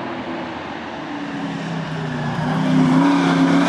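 A car engine roars as the car speeds up a winding road, growing louder as it approaches.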